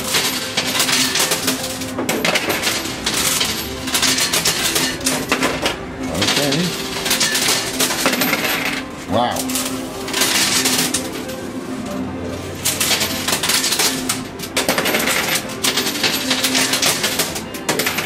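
Coins clink and jingle as a pusher shelf slides back and forth.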